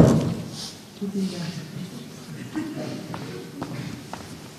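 A man speaks calmly in a large echoing hall.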